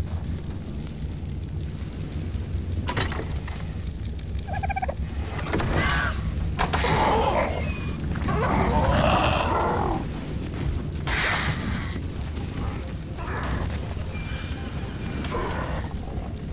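A torch fire crackles and roars.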